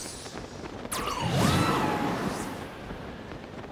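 A strong gust of wind whooshes past and fades.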